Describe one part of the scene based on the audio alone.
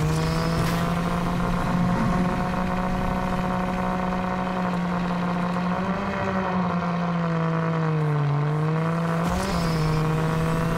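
Tyres rumble over rough dirt.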